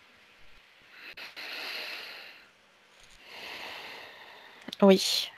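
A woman breathes slowly and deeply.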